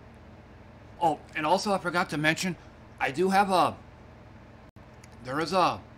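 A man speaks animatedly into a close microphone.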